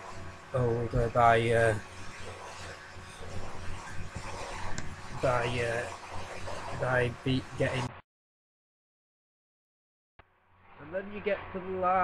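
A young man talks casually and close up, heard through a laptop microphone.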